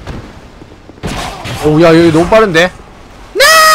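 A sword strikes a foe with a heavy metallic clang.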